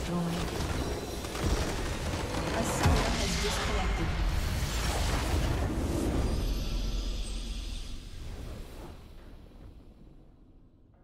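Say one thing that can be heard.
A large magical structure explodes with a loud, roaring blast that slowly fades away.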